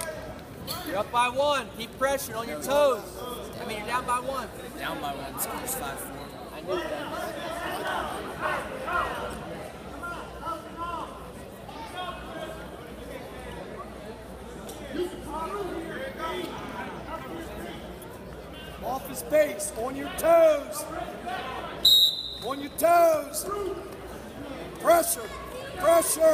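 A man shouts instructions loudly from nearby.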